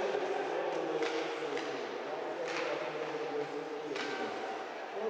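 Hockey sticks smack a puck on ice.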